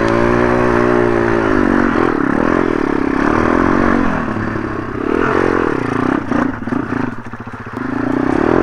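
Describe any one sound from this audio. A dirt bike engine revs up and down loudly close by.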